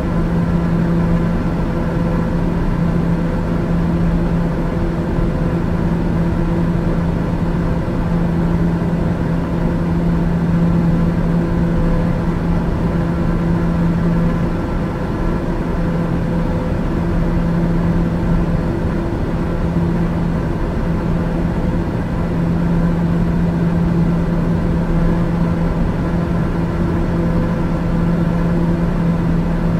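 An aircraft engine drones steadily with a low hum inside the cabin.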